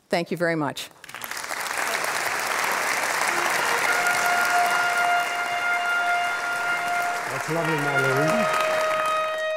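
A large audience applauds.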